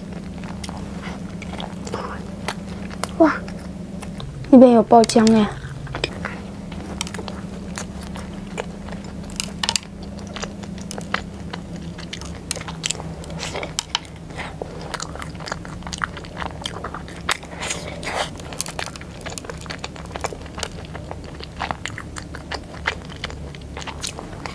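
A young woman chews and munches soft cake close to a microphone.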